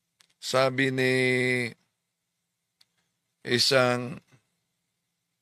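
An adult man sings two long, sustained phrases close to a microphone.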